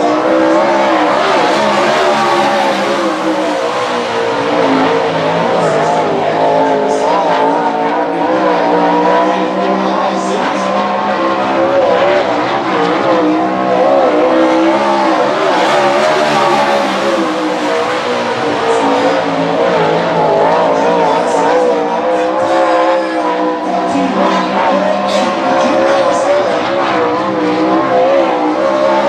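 A sprint car engine roars loudly, its pitch rising and falling as it speeds by.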